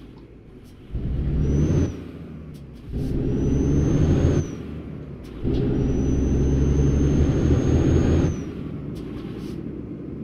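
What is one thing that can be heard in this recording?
A truck engine revs up in bursts and settles back to idle.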